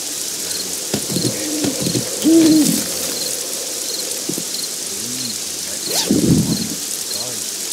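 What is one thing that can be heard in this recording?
A young man speaks briefly into a nearby microphone.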